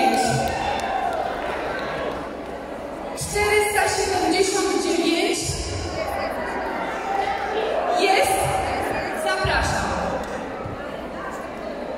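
A large crowd of women chatters loudly in an echoing hall.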